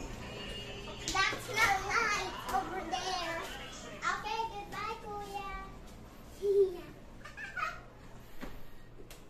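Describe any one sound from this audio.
Young children talk and call out excitedly nearby.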